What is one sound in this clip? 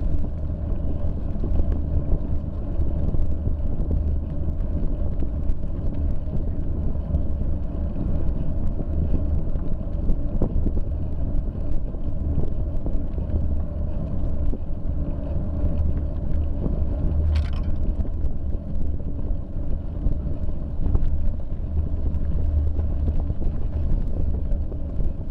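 Wind rumbles steadily past, outdoors.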